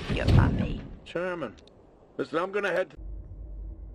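A man speaks calmly.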